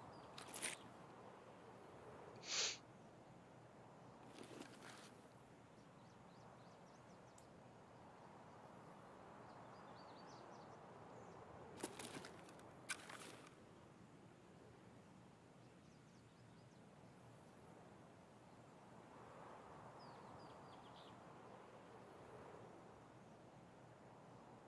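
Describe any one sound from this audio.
Wind blows softly and steadily outdoors.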